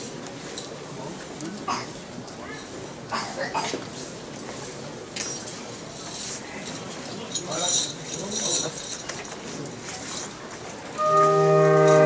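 A crowd murmurs and talks quietly outdoors.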